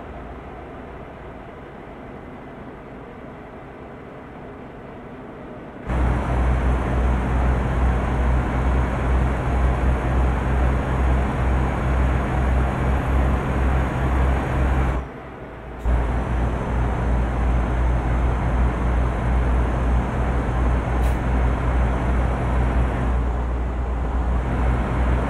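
A truck engine drones steadily with a deep hum.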